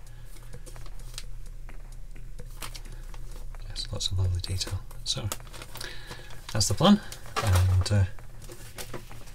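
Plastic bags crinkle and rustle in someone's hands.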